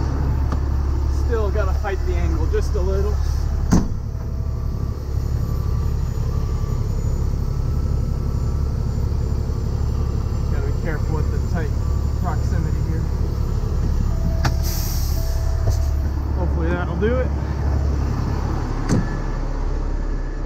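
A large diesel engine idles with a steady low rumble.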